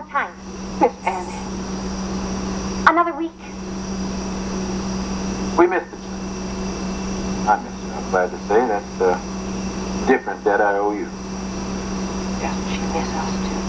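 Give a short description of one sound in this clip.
A middle-aged woman speaks, heard through a television speaker.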